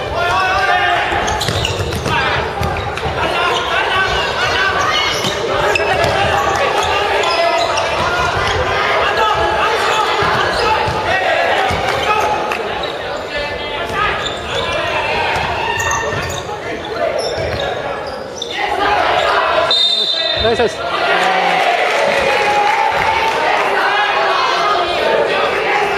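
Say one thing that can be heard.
Young men shout and call out in an echoing gym.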